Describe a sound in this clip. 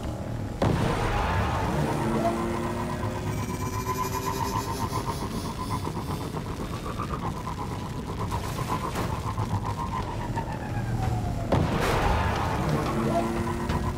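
A vehicle boosts forward with a loud whoosh.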